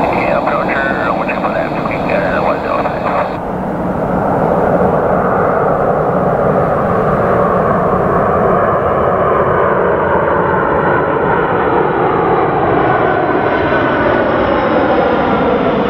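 A jet airliner's engines roar loudly as it approaches low overhead, the roar growing and shifting in pitch.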